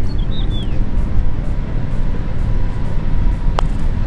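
A putter taps a golf ball softly.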